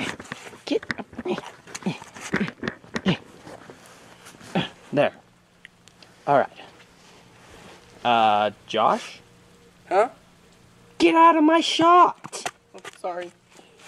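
A teenage boy talks with animation close by.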